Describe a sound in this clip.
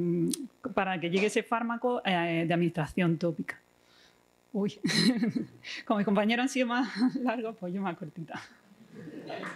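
A young woman speaks with animation through a microphone in an echoing hall.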